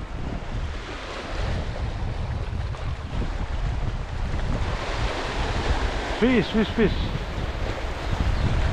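Waves wash over a pebble beach.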